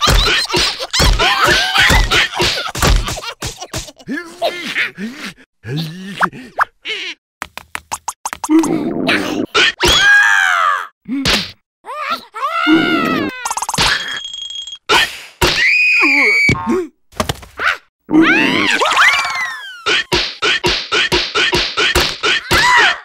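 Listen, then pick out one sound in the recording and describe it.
Cartoon creatures thump and scuffle as they tussle.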